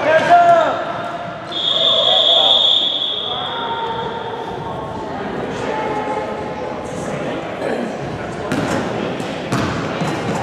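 Young girls call out in a large echoing hall.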